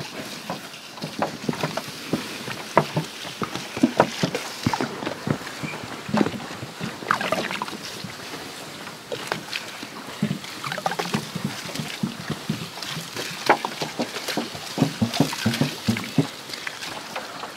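Water pours from a jug onto hot stones, hissing and sizzling as steam rises.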